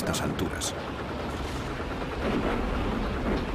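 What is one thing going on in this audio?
A flamethrower roars with a rushing blast of fire.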